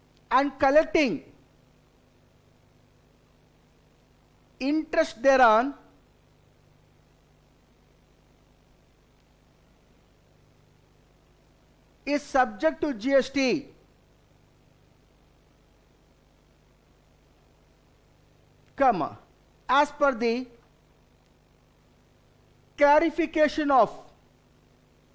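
A man speaks calmly into a microphone in short phrases with long pauses.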